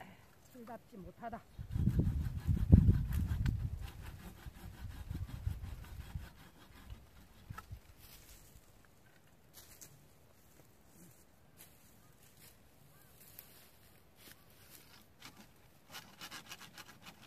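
Pruning shears snip through thin branches.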